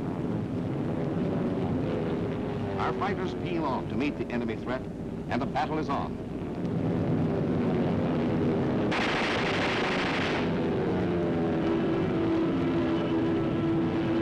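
Propeller aircraft engines drone overhead.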